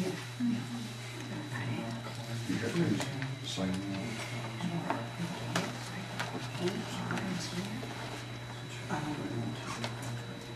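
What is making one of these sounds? An adult speaks calmly at a meeting, heard from across a room.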